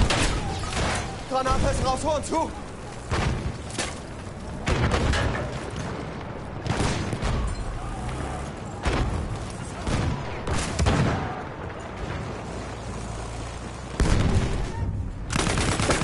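Guns fire in bursts.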